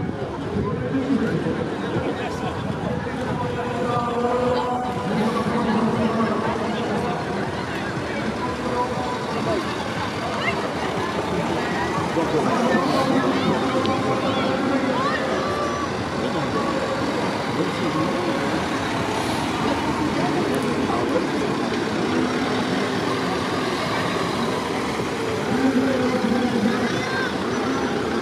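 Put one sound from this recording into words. Cars and vans drive past close by, their engines humming.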